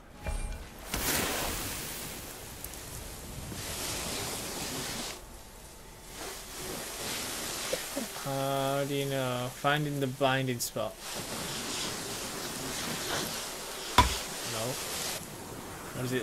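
Flames hiss and roar.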